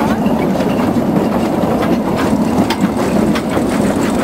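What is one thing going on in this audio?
Railway carriages clatter over the rails.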